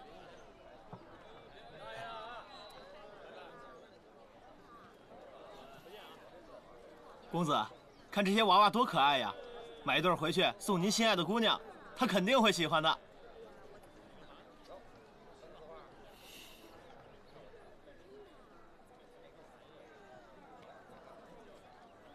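A crowd murmurs faintly in the background.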